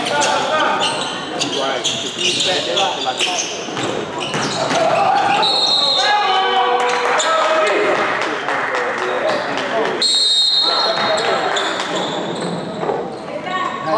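Spectators shout and cheer from the sidelines.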